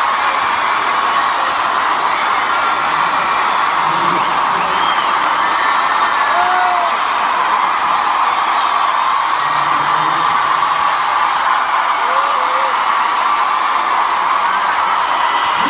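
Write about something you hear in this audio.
Music plays loudly through loudspeakers.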